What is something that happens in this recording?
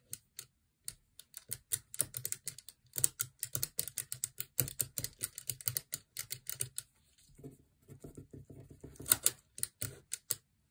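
Fingers rapidly flick the beads of a Japanese abacus, clicking.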